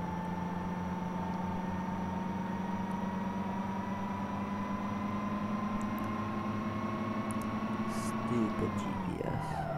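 A large diesel engine drones steadily.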